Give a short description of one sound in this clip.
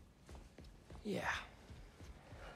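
A young man speaks briefly in a low, troubled voice.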